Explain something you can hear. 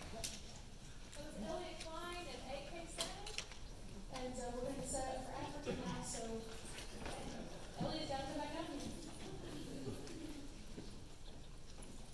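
A woman speaks calmly into a microphone over loudspeakers in a large hall.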